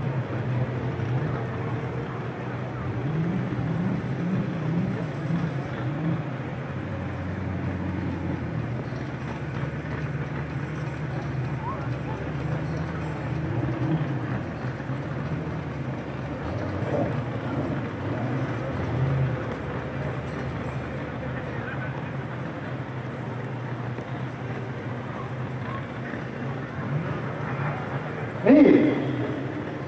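A crowd of people chatters at a distance outdoors.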